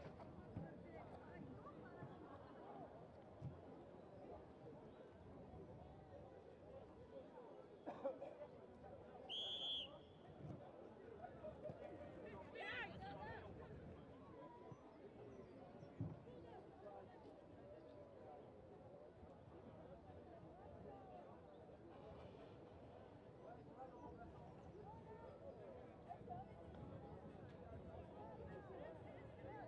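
A crowd of spectators chatters and calls out nearby outdoors.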